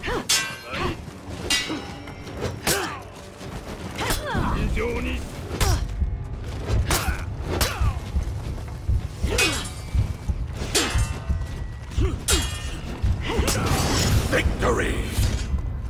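Metal blades clash and ring in a fast sword fight.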